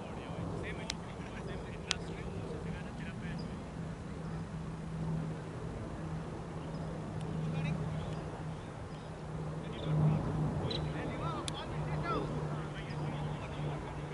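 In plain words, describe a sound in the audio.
Men talk faintly in the distance outdoors.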